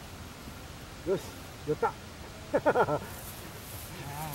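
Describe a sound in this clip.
A man exclaims and talks nearby outdoors.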